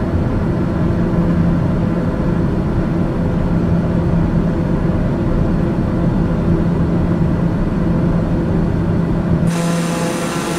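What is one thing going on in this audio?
A propeller engine drones steadily, muffled as if heard from inside a cabin.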